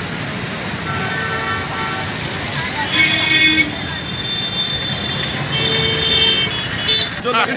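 Motorbike and rickshaw horns honk.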